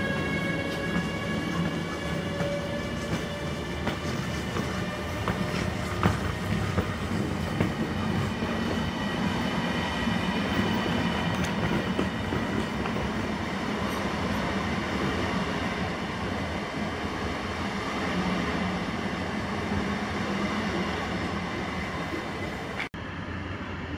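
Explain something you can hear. A train rushes past at high speed with a steady roar.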